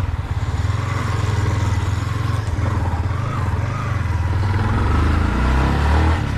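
A motorcycle engine rumbles close by, revving up near the end.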